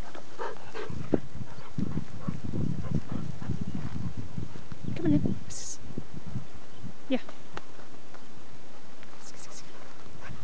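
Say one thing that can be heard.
A dog's paws patter across dry grass.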